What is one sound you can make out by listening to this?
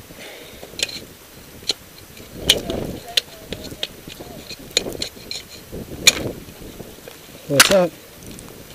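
Ice axes strike hard ice with sharp thuds.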